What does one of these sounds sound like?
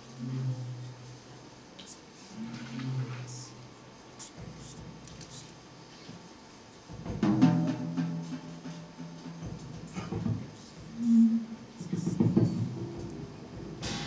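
An electric guitar plays.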